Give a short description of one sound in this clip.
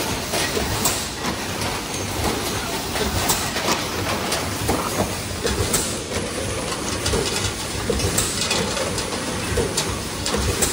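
Compressed air hisses in short bursts.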